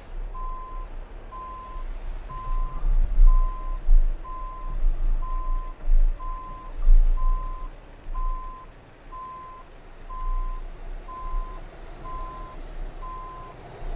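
A truck engine rumbles low and steady while driving.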